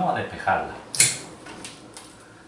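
Pruning shears snip a twig with a sharp click.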